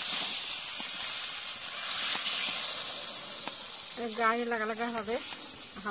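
Water pours into a hot pan with a hiss.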